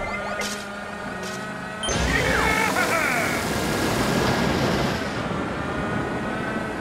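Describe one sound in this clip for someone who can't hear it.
A kart engine hums as a racer drives.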